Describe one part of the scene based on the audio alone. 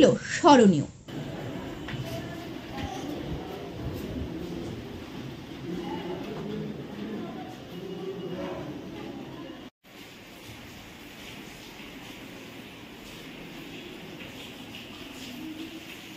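Children murmur quietly in a room.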